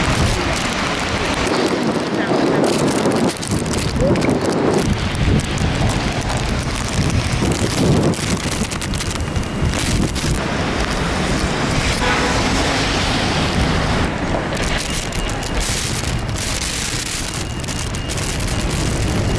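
Rain patters on wet pavement.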